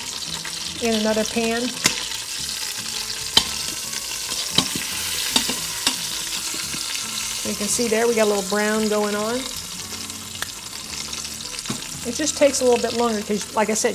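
Meat sizzles steadily in hot oil.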